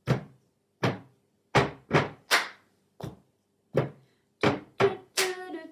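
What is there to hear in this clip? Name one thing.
Plastic cups knock on a table in a quick rhythm.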